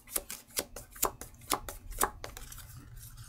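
Playing cards click and snap as they are handled.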